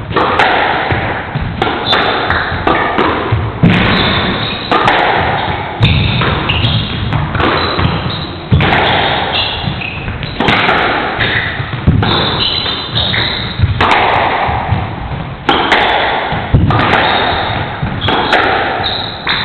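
A squash ball slaps against the front wall again and again.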